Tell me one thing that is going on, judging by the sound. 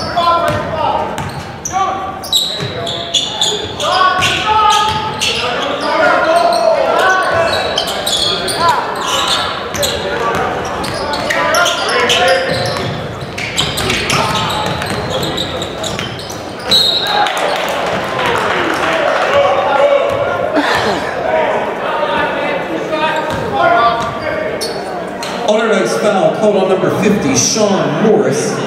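A crowd talks and cheers in a large echoing gym.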